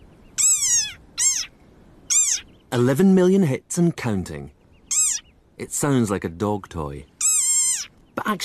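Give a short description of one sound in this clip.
A small animal squeaks in short, high, rising and falling chirps.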